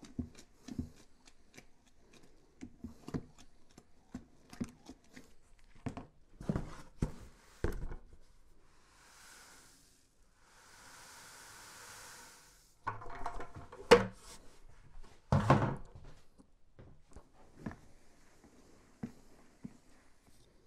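A spoon knocks and scrapes against the inside of a cooler.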